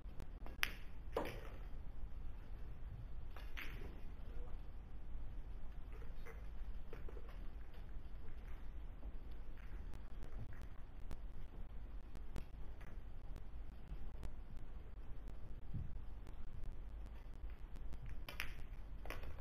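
A cue tip strikes a billiard ball.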